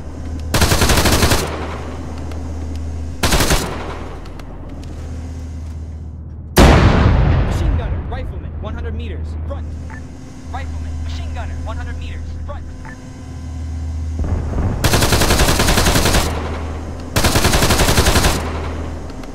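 A gun fires loud blasts.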